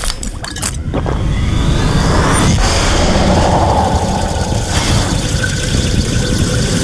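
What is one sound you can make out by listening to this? Crackling energy surges and hisses loudly.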